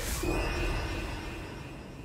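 A laser beam crackles and hums.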